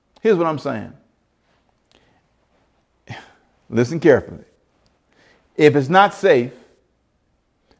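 A middle-aged man speaks expressively into a close microphone, in short bursts with pauses.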